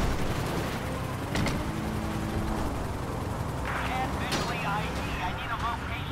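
A car engine rumbles steadily as the car drives along.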